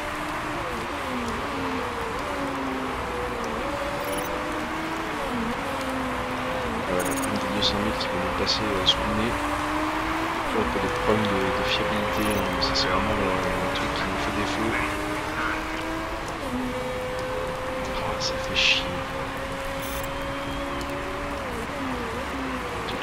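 Racing car engines whine and rise and fall in pitch as cars speed past.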